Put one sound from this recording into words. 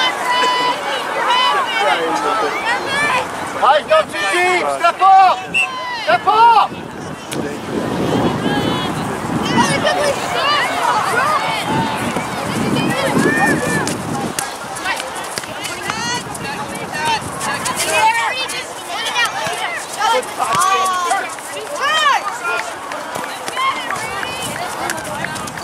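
Young players shout and call to each other across an open field outdoors.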